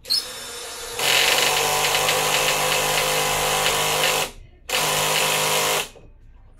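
A power drill whirs steadily.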